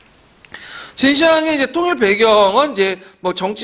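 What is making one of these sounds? A middle-aged man speaks with animation into a microphone in an echoing room.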